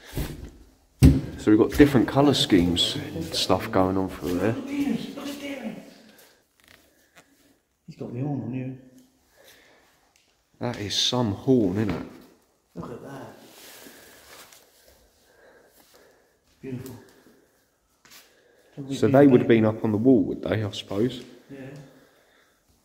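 A man talks in a low, calm voice.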